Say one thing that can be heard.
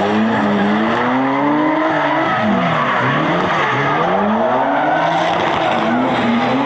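Car engines rev hard, rising and falling in pitch.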